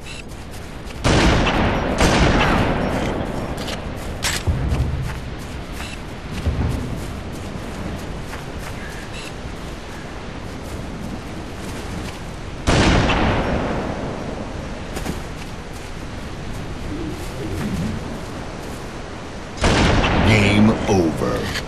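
A sniper rifle fires loud booming shots that echo away.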